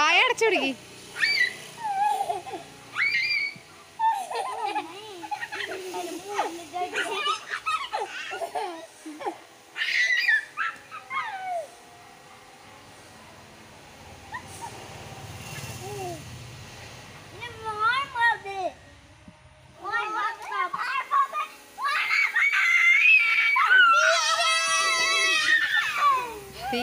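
Young children talk and shout excitedly nearby.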